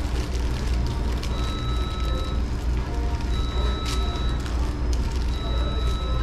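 Paper wrappers crinkle as food is unwrapped.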